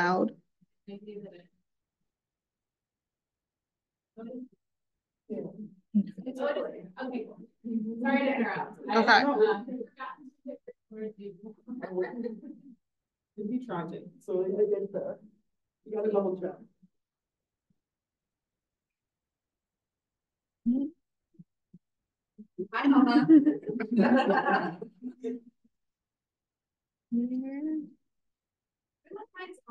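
A young woman speaks calmly and haltingly over an online call.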